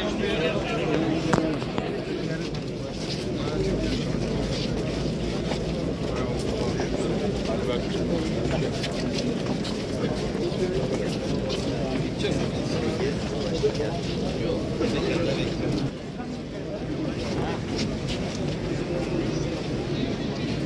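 A crowd of men murmurs and talks nearby.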